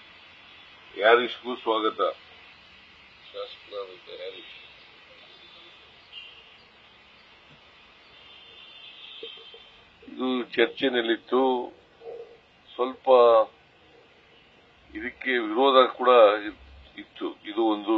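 An elderly man gives a speech through a microphone and loudspeakers, with pauses between phrases.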